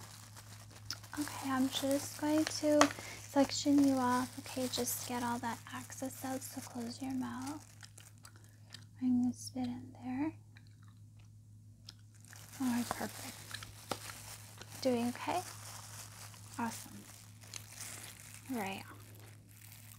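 A woman speaks softly and close to a microphone.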